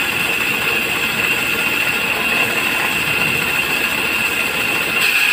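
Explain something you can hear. A grinding wheel whirs steadily as it grinds a hand-held piece.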